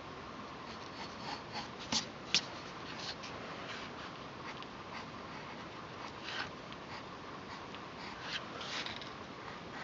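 A pencil taps lightly on paper.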